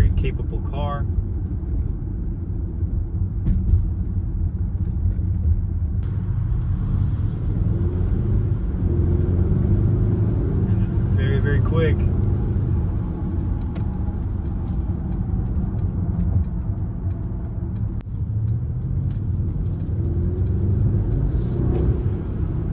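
A car engine and tyres rumble steadily on the road from inside the cabin.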